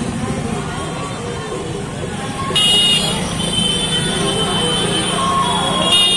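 Vehicles rumble along a busy street.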